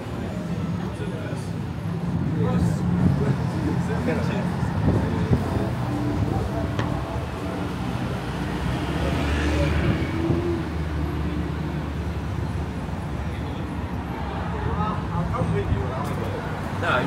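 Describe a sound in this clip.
Cars drive past on a street.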